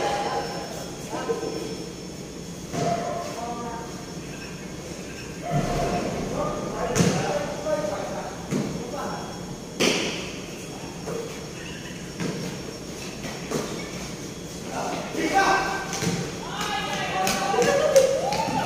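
Young men shout and call out to each other across a large echoing court.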